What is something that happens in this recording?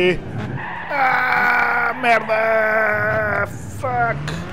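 Tyres screech loudly as a car skids.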